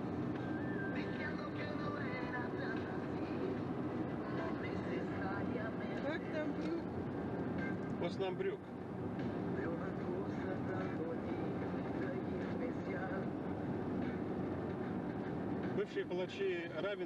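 A car drives along a road with a steady rumble of tyres and engine.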